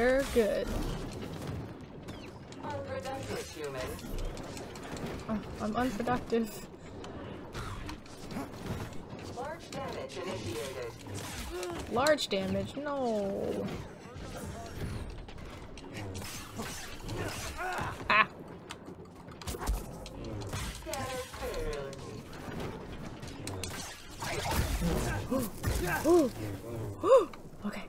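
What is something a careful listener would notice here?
A lightsaber swings and strikes metal with sharp clangs.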